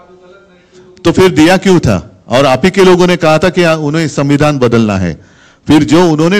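A man speaks firmly into a microphone at close range.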